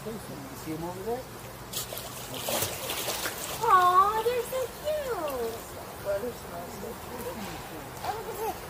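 A child talks excitedly close by.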